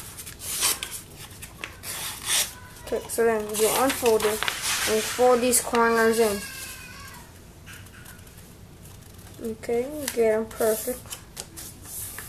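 Paper rustles and crinkles as it is folded and creased.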